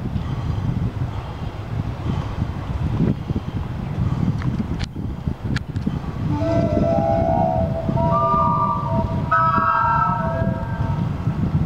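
Wind blusters across the microphone outdoors.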